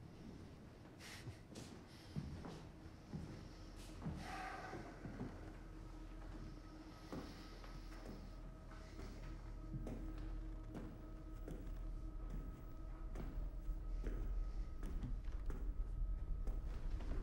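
Footsteps creak slowly across a wooden floor.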